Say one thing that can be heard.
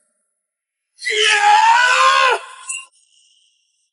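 A young woman cries out loudly in pain.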